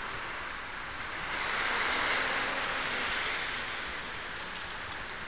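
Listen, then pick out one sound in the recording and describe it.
A large truck rumbles past close by.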